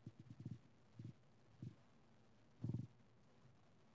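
Dull thumps knock against a microphone as it is handled.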